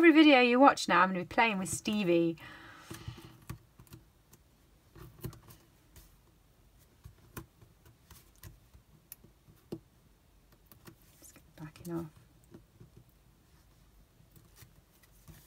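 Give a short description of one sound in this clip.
Paper rustles and crinkles softly under fingers close by.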